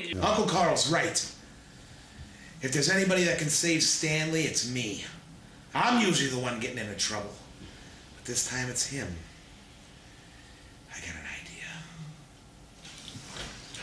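A man speaks with animation close to a microphone, with pauses.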